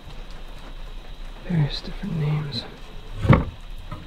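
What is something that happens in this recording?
A wooden drawer scrapes open.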